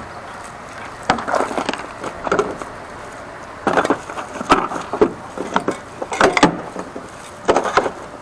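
Objects knock and clatter against a metal counter.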